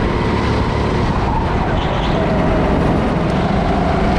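Tyres squeal on the smooth track as the kart corners.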